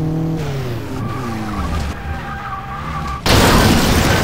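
Tyres screech as a car skids off the road.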